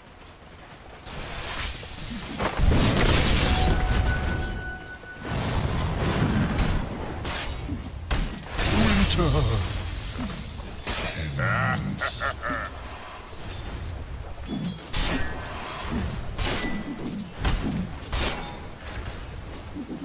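Fantasy battle sound effects clash and burst as spells and blows land.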